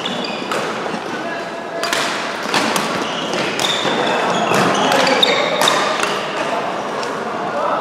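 Badminton rackets strike a shuttlecock in a rally.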